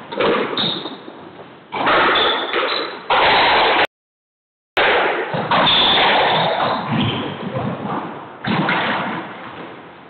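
A squash ball smacks hard against the walls, echoing in a large hard-walled court.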